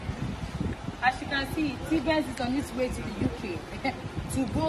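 A young woman talks casually close by.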